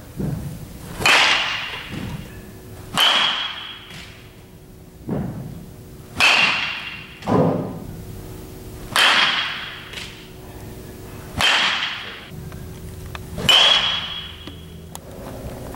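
A bat cracks sharply against a baseball, again and again, echoing in a large hall.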